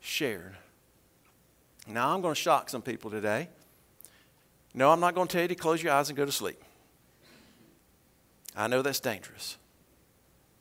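An older man speaks calmly into a microphone, with pauses between phrases.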